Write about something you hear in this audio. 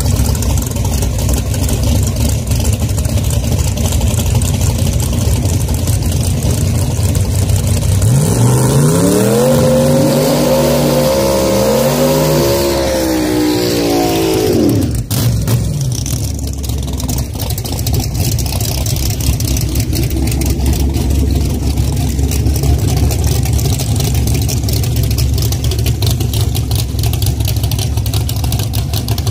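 A car engine rumbles loudly and steadily.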